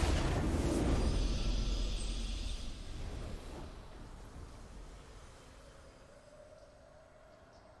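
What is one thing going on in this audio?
A triumphant fanfare plays and fades.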